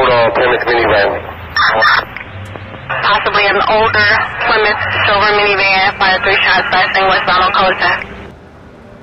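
A man speaks steadily and clearly, close to a microphone.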